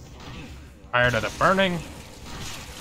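A monster roars loudly.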